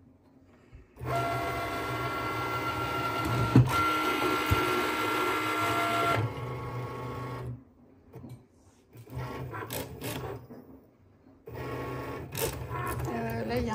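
A cutting machine whirs and hums as its blade carriage moves back and forth.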